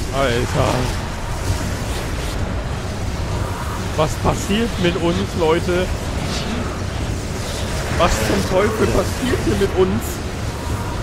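A young man talks with animation through a close microphone.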